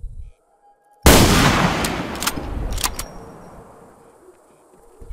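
A rifle fires a single loud, sharp shot that echoes and slowly fades.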